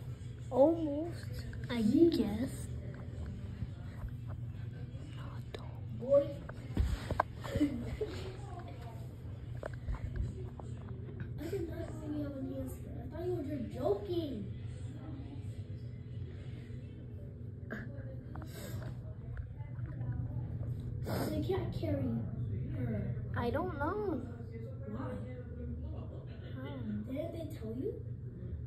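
A young child talks with animation close by.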